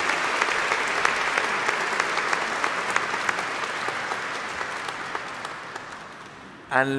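A large crowd claps in an echoing hall, and the applause slowly fades.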